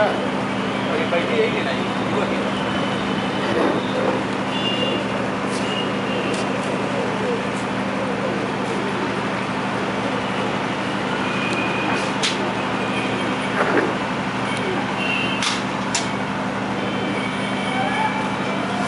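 Pigeons coo and murmur softly nearby.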